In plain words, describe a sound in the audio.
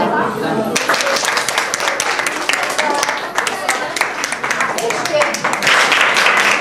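A group of people clap their hands.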